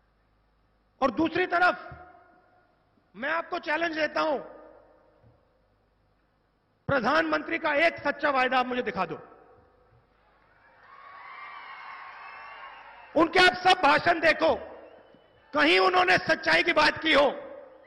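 A man speaks forcefully into a microphone, his voice booming and echoing over loudspeakers outdoors.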